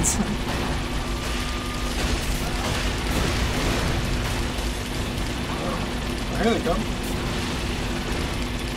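Explosions boom and crackle repeatedly.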